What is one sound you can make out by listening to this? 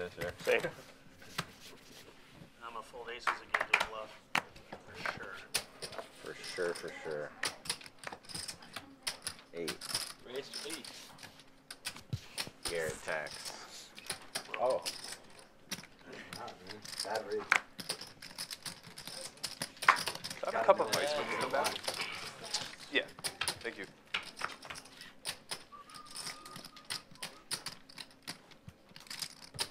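Poker chips click and clatter.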